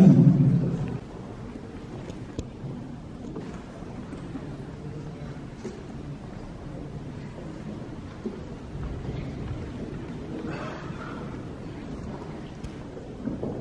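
A seated audience murmurs quietly in a large room.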